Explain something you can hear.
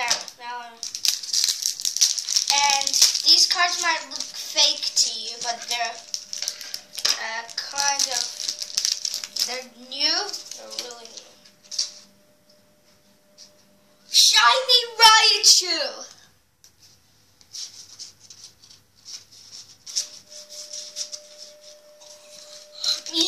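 Cards rustle and crackle in a wrapper.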